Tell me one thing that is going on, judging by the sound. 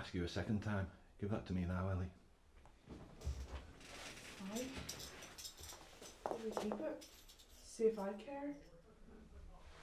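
A middle-aged man speaks tensely and close by.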